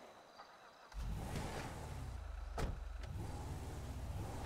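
A vehicle engine starts and rumbles.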